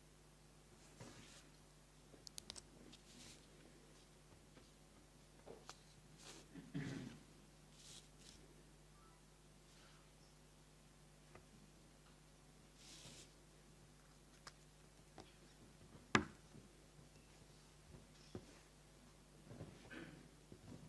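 Paper rustles softly as a man handles sheets.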